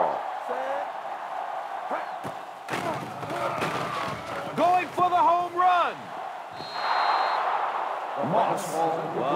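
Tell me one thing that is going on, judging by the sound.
A stadium crowd cheers and roars steadily, swelling louder near the end.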